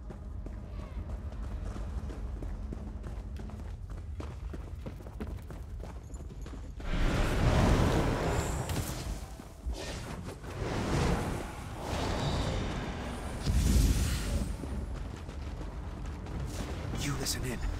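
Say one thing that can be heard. Footsteps run over stone and wooden floors.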